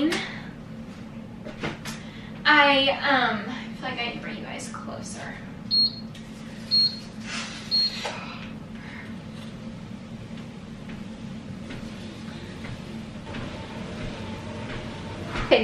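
Footsteps thud on a treadmill belt.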